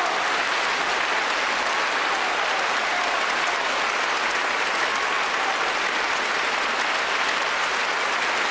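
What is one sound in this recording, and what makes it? A large audience applauds steadily in a big echoing hall.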